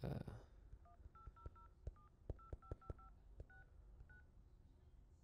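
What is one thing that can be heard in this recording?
Phone keys beep with short tones as a number is dialed.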